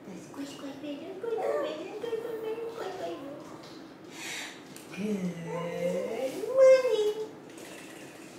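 A young woman talks softly and playfully, close by.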